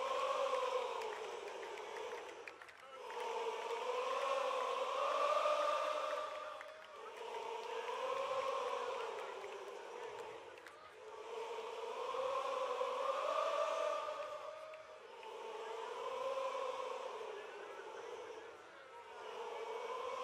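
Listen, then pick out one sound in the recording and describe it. A large crowd chants loudly in unison, in rising and falling waves, outdoors.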